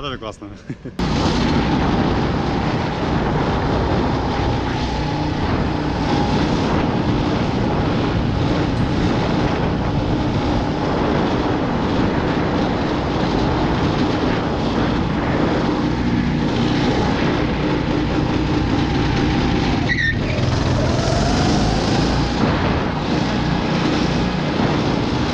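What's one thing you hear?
A go-kart engine drones loudly and steadily up close.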